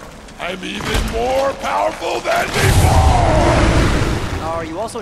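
A man roars loudly with a deep, strained voice.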